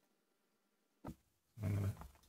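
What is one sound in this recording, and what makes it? A wooden block knocks down onto a table.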